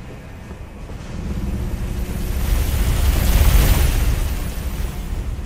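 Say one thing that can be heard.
A heavy weapon swings through the air with a whoosh.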